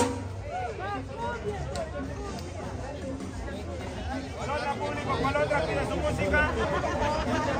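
Drums beat a lively rhythm nearby.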